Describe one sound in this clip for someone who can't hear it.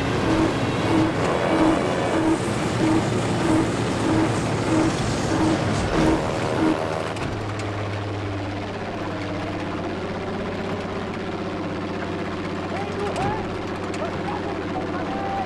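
A propeller plane's engine drones loudly and steadily.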